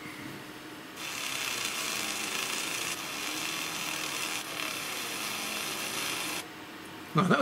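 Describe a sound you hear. A laser engraver whirs steadily as it burns into wood.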